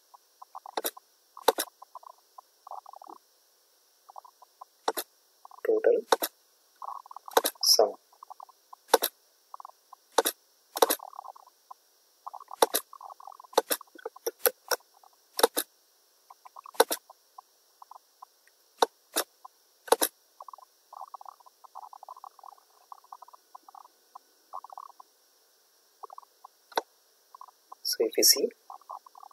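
A computer mouse clicks sharply, again and again.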